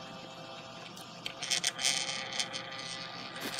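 Fingers click and tap against plastic.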